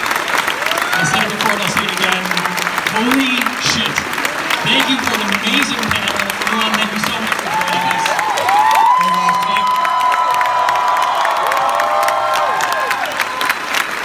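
People in an audience whoop and whistle.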